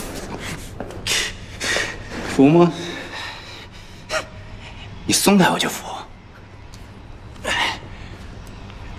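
A young man speaks tensely up close.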